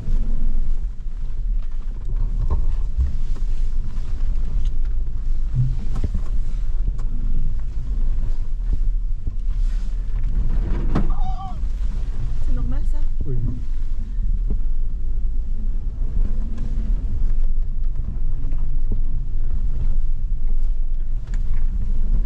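A car rattles and bumps over a rough dirt track.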